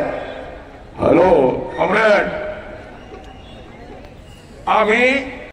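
A crowd chants slogans loudly in short bursts outdoors.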